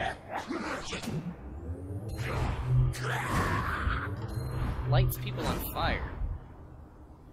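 A man pleads anxiously, close by.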